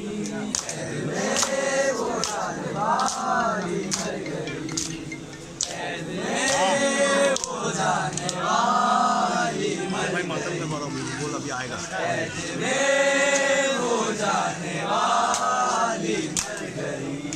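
A group of young men chant loudly together in a rising and falling melody.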